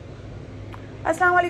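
A woman speaks close to the microphone.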